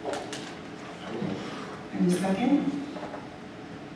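A man speaks briefly into a microphone in a large echoing hall.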